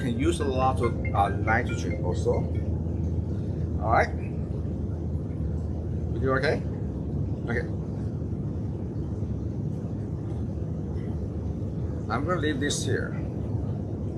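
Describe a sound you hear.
A man speaks calmly and close by, with pauses between his words.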